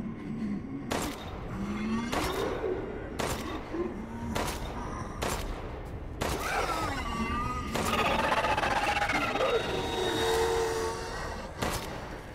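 A creature groans and snarls close by.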